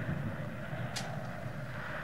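A match is struck and flares.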